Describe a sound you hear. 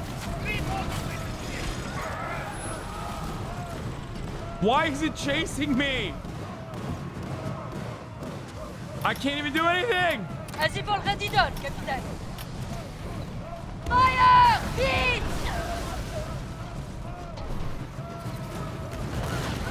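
Waves crash and splash against a ship's hull.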